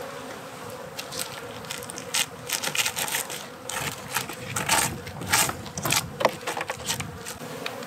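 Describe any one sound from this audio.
A metal hive tool scrapes and clicks against wooden frames.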